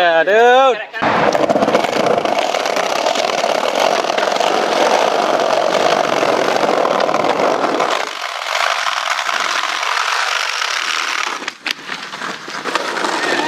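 Skateboard wheels roll over pavement.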